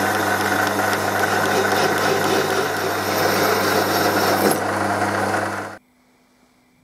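A metal lathe whirs steadily as a cutting tool shaves metal.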